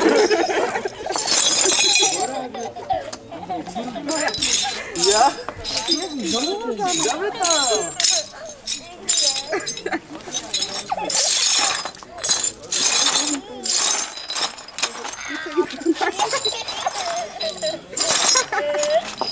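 Shards of broken china clink and scrape on the ground.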